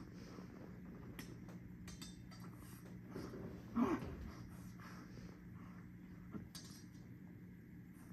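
Swords clash and clang on a stage.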